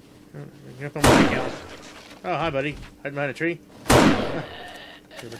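A rifle fires two loud shots that echo briefly.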